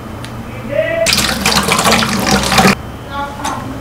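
Water runs from a tap onto a strainer.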